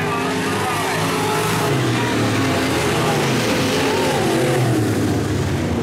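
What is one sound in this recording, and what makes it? Race car engines roar loudly, rising and falling in pitch.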